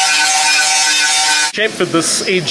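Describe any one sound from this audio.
A grinder rasps loudly against a pipe.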